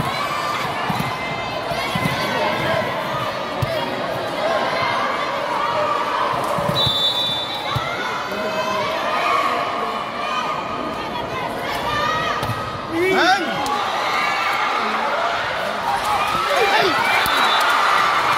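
A volleyball is hit with sharp thuds.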